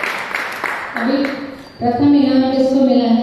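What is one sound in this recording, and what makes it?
A woman speaks into a microphone, heard through a loudspeaker.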